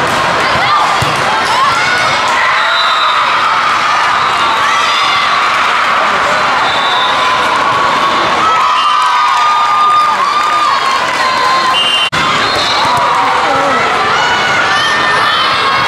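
A volleyball is struck with a hand with a sharp slap.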